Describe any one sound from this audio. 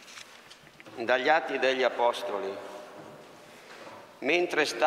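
A man reads aloud calmly through a microphone.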